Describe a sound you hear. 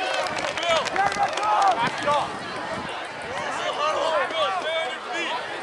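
A crowd murmurs and calls out in an outdoor stadium.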